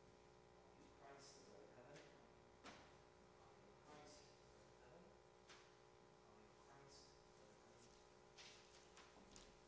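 A man speaks quietly in a small echoing room.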